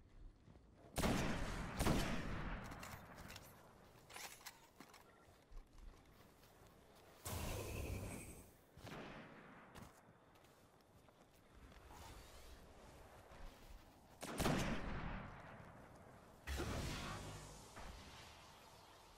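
A rifle fires loud booming shots that echo and fade.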